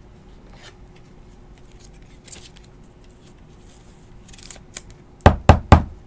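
Plastic card holders click and tap together in hands.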